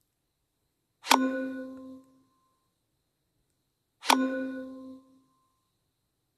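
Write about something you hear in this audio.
A bright game chime rings out twice and quickly fades.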